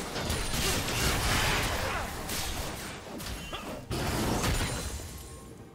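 Magic spells whoosh and crackle in a video game fight.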